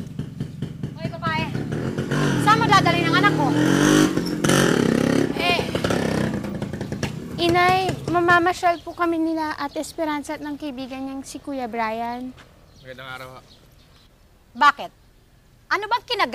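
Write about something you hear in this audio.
A woman talks with animation outdoors.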